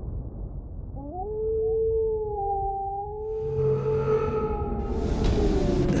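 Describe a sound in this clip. A wolf howls long and mournfully.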